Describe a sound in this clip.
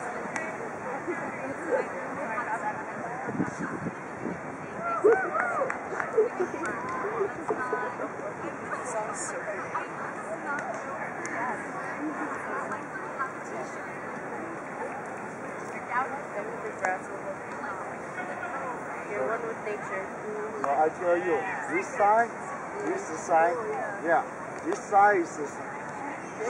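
Young women talk casually nearby.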